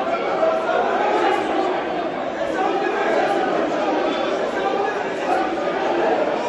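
A crowd of men shout and argue loudly in a large echoing hall.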